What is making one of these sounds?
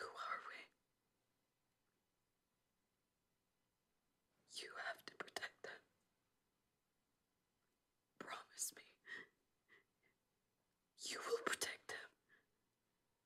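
A young woman speaks weakly and tearfully, close by, in short bursts with pauses.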